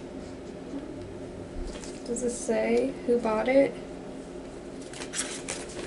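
Paper rustles in a young woman's hands.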